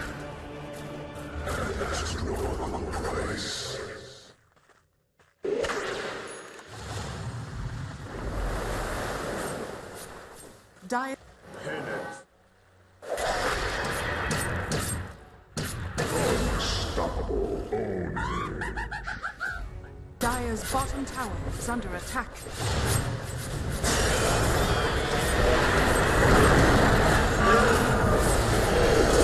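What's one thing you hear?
Magic spells crackle and burst during a fantasy battle.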